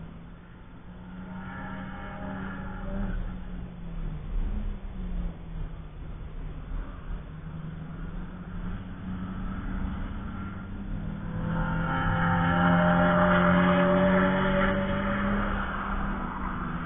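A race car engine roars along a track, rising and fading as cars pass.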